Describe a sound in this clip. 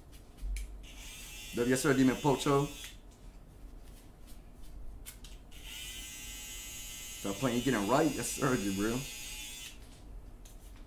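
Electric hair clippers buzz close by.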